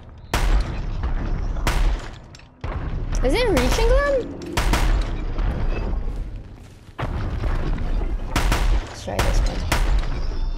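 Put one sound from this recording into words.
A young woman talks into a close microphone.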